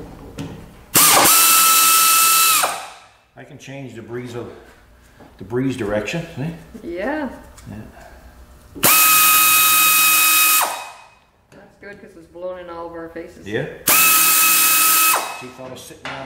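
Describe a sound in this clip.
A pneumatic tool whirs loudly in short bursts.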